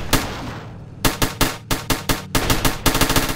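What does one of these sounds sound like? Guns fire in short rapid bursts.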